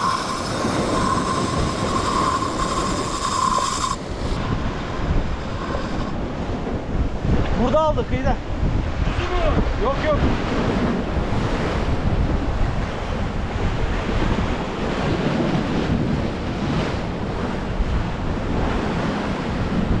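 Waves crash and wash against rocks close by.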